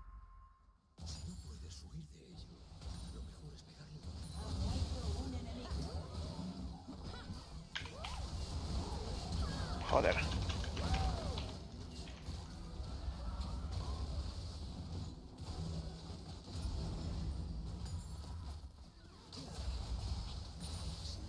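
Spell effects whoosh, crackle and blast in a game fight.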